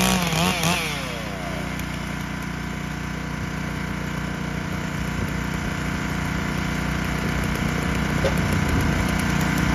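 A small gasoline engine runs with a steady, rough drone.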